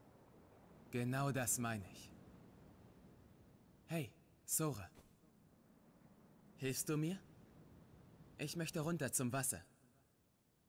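A second young man answers calmly, close by.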